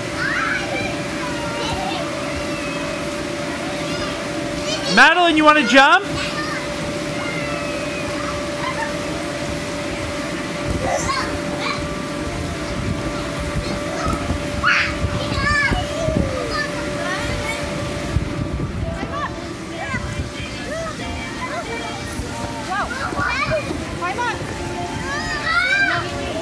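Young children shout and squeal nearby.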